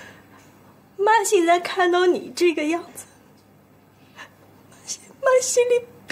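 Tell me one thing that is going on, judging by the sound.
A middle-aged woman speaks tearfully up close, her voice trembling.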